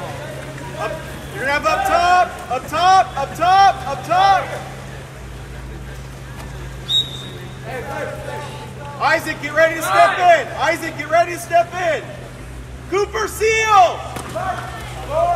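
Spectators shout and cheer loudly outdoors.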